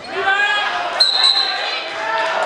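A referee blows a short whistle.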